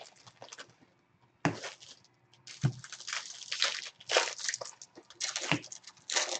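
Foil wrappers crinkle and rustle as hands handle card packs.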